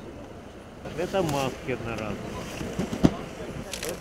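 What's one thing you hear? Cardboard boxes rustle and scrape as hands open them.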